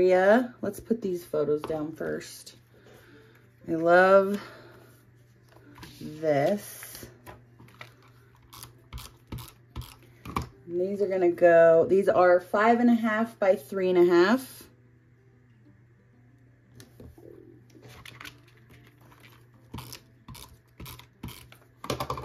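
A tape dispenser clicks against paper.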